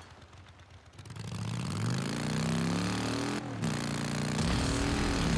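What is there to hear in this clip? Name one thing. A motorcycle engine revs up and roars, rising and falling in pitch as it shifts gears.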